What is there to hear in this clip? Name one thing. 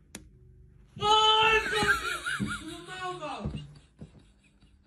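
A man screams in fright, close by.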